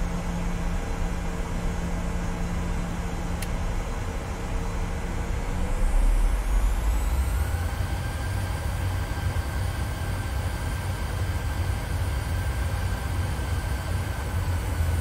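A jet engine hums steadily, rising in pitch and then holding a higher whine.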